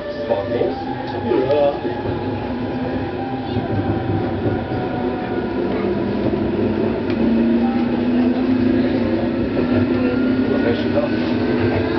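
A train's motor hums, slowly rising in pitch as the train speeds up.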